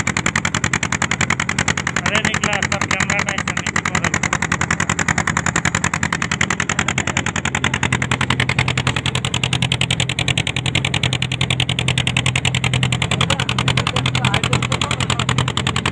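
A boat engine chugs steadily and fast.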